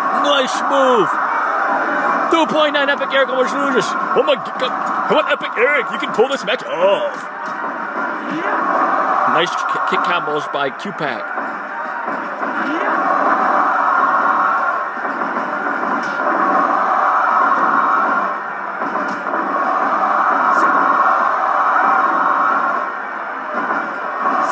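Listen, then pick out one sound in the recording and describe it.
Blows and body slams thud from a television.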